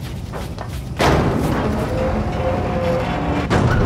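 A large machine rumbles and whirs loudly.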